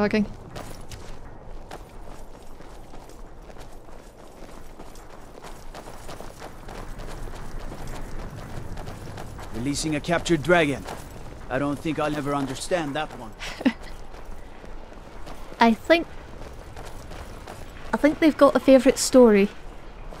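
Footsteps run over stone paving.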